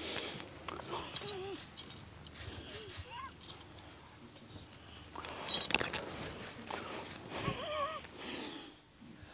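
A man speaks softly nearby.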